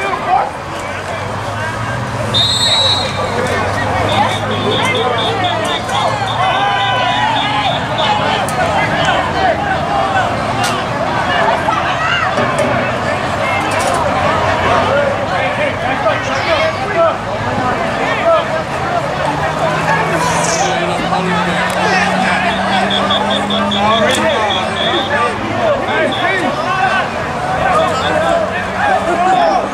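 A crowd of men and young men shouts and chatters excitedly outdoors.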